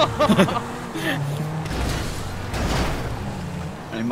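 A car crashes into another car with a heavy thud.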